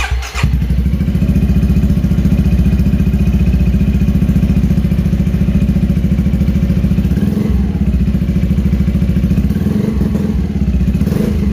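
A scooter engine idles with a deep, rapid, throbbing rumble from its exhaust.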